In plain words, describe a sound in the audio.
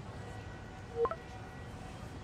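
A phone gives a short chime.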